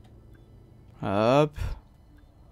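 A man exclaims briefly into a close microphone.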